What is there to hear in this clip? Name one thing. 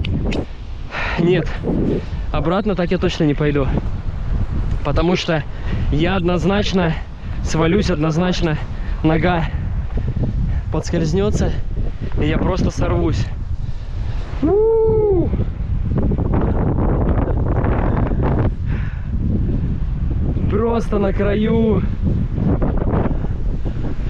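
Wind blows against the microphone outdoors.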